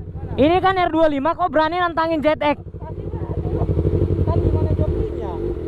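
A motorcycle engine idles with a low, steady throb.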